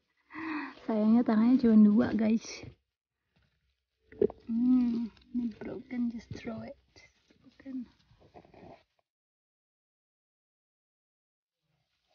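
Leafy branches rustle as hands pick berries.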